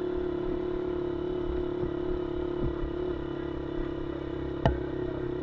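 A race car engine roars steadily up close.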